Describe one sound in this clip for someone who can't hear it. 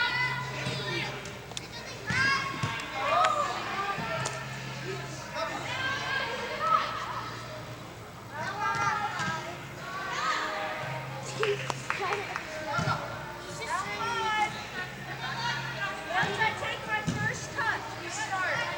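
Young girls shout and cheer, echoing in a large indoor hall.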